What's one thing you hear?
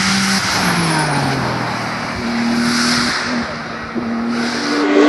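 A racing car engine roars loudly as the car speeds past and fades.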